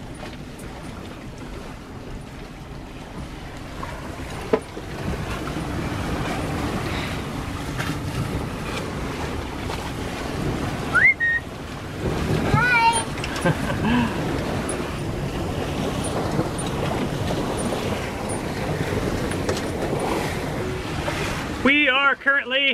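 Wind and rushing water roar steadily around a moving sailboat.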